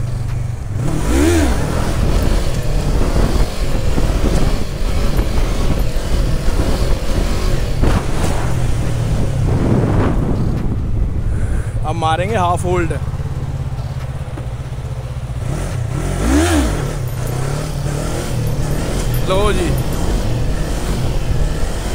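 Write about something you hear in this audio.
A motorcycle engine rumbles steadily close by and briefly revs up.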